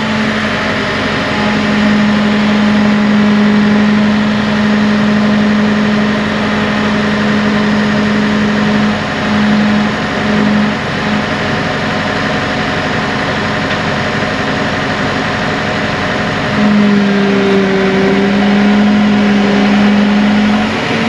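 A heavy machine's engine hums steadily nearby.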